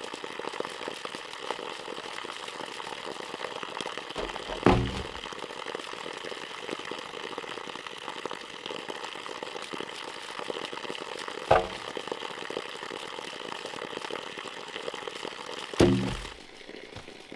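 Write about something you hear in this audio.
Water pours steadily from a pipe onto the ground.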